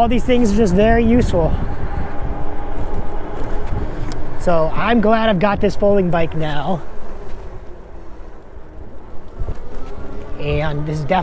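Bicycle tyres roll steadily on pavement.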